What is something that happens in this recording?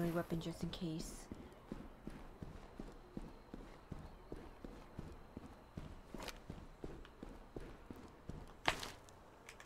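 Footsteps thud steadily on a wooden floor and stairs.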